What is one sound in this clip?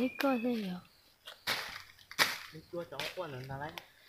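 Dry leaves rustle under footsteps.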